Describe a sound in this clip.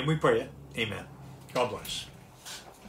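An elderly man speaks briefly and calmly, close by.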